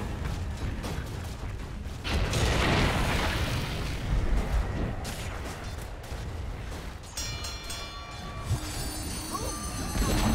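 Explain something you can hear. Blows and impacts clash repeatedly in a game fight.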